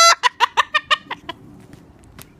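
A cockatoo squawks in quick bursts close by.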